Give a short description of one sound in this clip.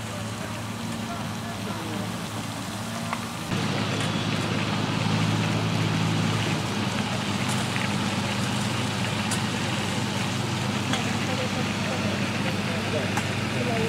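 Water hisses as it sprays hard from a fire hose outdoors.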